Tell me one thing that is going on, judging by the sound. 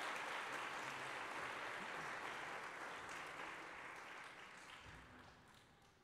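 An orchestra plays in a large echoing hall, its sound slowly fading.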